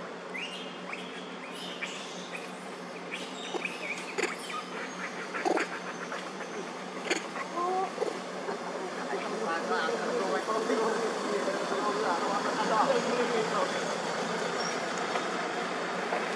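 A monkey chews food with soft smacking sounds.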